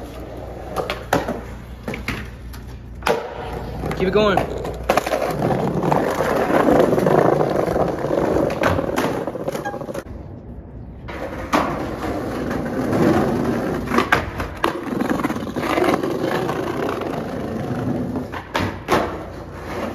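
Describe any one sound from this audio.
A skateboard snaps and clacks as it lands.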